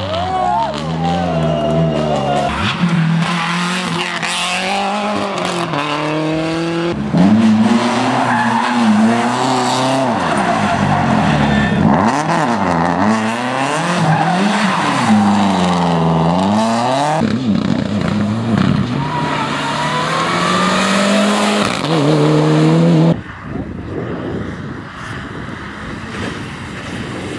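Rally car engines roar and rev hard, rising and falling in pitch as gears change.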